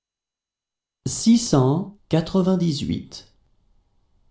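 A young woman's voice reads out a number clearly.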